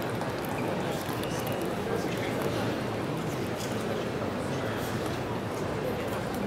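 A large crowd murmurs steadily in a big echoing hall.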